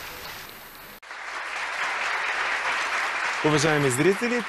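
A crowd claps steadily.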